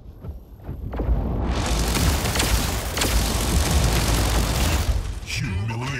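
Rapid laser gunfire blasts loudly.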